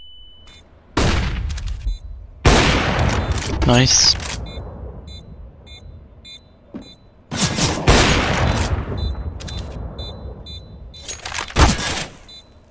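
A sniper rifle fires loud, echoing shots.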